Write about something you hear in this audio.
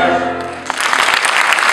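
A choir sings a chord in a large hall.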